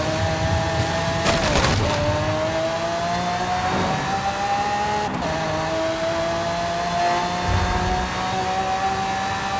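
A car engine revs loudly and climbs in pitch as it speeds up, dropping briefly at each gear change.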